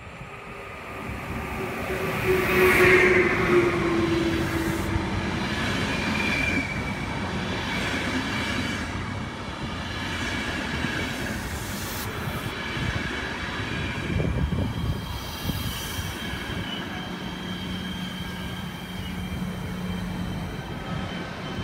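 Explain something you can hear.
A passenger train rumbles and clatters past close by.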